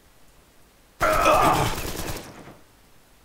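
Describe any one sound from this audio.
A knife slashes and strikes with a sharp burst of noise.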